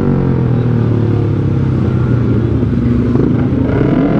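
Other motorcycle engines rumble nearby in traffic.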